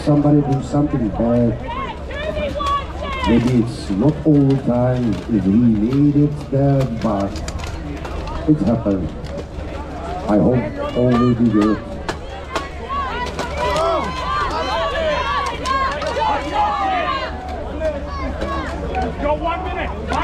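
Men shout and cheer loudly outdoors.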